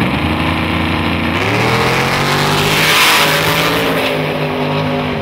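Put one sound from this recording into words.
A race car engine roars loudly and rises in pitch as the car launches and speeds past close by.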